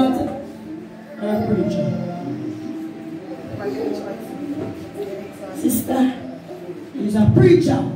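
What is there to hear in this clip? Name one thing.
A woman speaks into a microphone with animation, close by.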